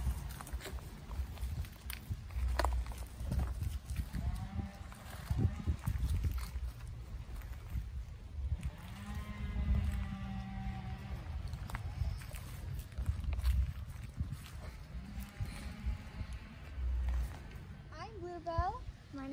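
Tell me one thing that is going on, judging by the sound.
Light footsteps patter and shuffle on dry grass and earth.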